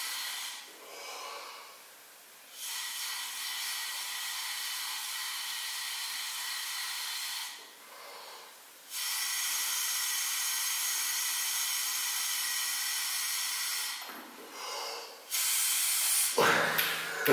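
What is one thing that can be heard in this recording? A man blows hard through a small breathing device in long hissing breaths.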